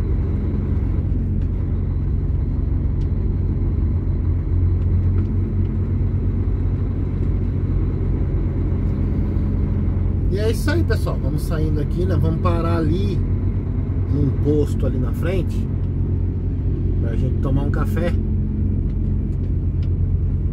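A heavy vehicle's engine rumbles steadily as it drives.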